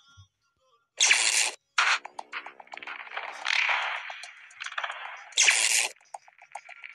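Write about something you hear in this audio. A bright, shimmering game sound effect bursts out twice.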